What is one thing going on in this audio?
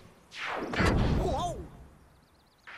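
Cartoon characters thud heavily onto the ground.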